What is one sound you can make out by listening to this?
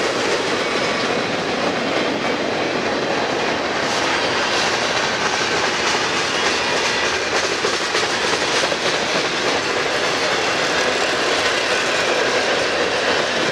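A freight train rumbles and clatters steadily past on the rails close by.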